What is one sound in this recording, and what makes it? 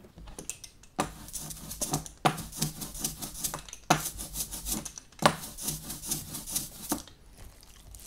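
An ink roller rolls back and forth over a sticky inked surface with a crackling hiss.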